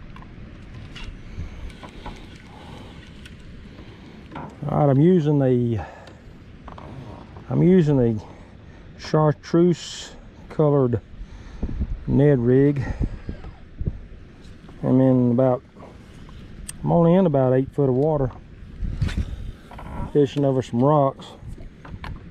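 A fishing reel whirs softly as its handle is turned.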